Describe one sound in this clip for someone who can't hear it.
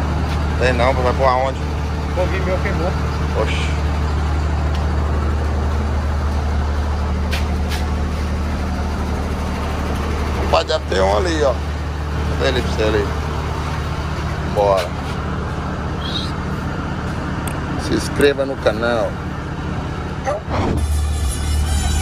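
A large truck engine idles with a steady low rumble.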